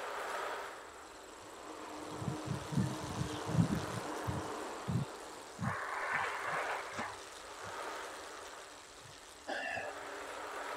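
A man speaks casually into a nearby microphone.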